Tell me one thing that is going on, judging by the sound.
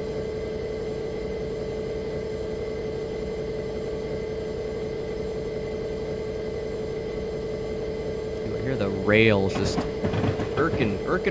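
A locomotive engine hums steadily.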